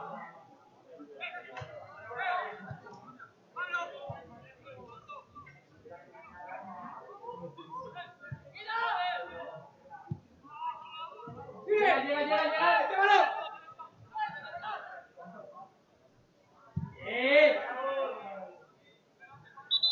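Men shout across an open sports field.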